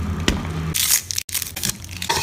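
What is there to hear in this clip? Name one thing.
Ice clinks as a straw stirs a drink in a plastic cup.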